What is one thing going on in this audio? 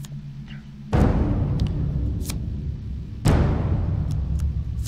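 Playing cards swish and slap down as they are dealt.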